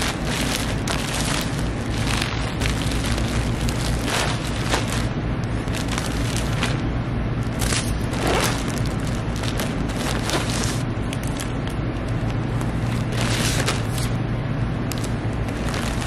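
A plastic mailer bag crackles as it is folded and sealed.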